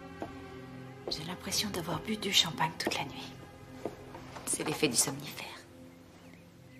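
A young woman speaks softly and happily, close by.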